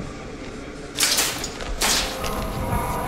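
A metal grate clanks open loudly.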